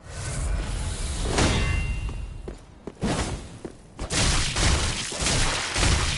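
Steel blades clash with sharp metallic rings.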